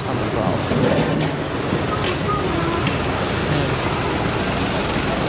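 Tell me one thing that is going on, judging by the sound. A busy crowd chatters all around outdoors.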